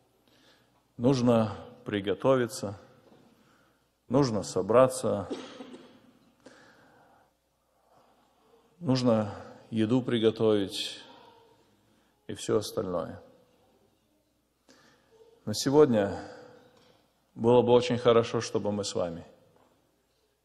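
A man speaks calmly into a microphone, with pauses, in a large echoing hall.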